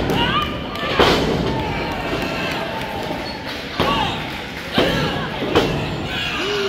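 Bodies slam onto a wrestling ring mat with loud thuds.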